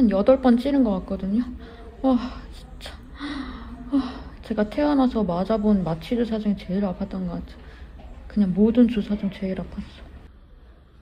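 A young woman talks close up, in a pained, whimpering way.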